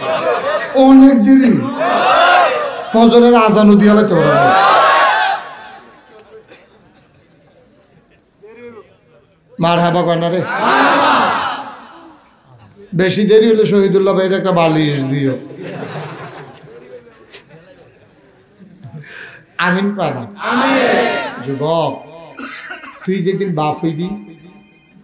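A man preaches loudly into a microphone, in a singing, chanting voice with long pauses.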